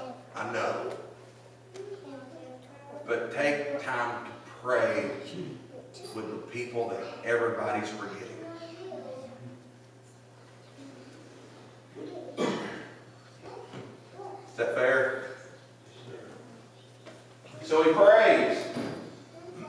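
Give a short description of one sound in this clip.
A middle-aged man speaks calmly into a microphone, heard through loudspeakers in a large echoing room.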